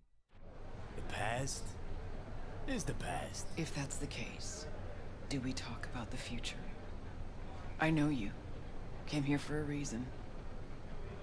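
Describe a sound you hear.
A woman speaks calmly, heard through a loudspeaker.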